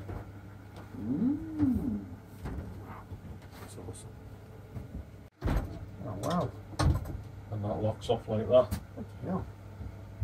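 A man nearby talks calmly in short bursts.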